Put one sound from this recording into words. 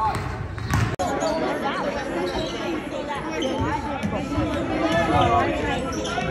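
A crowd of spectators shouts and cheers.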